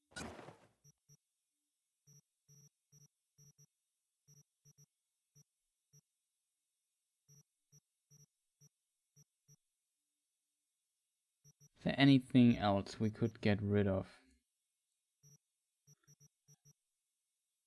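Short soft electronic clicks tick as a menu selection moves from item to item.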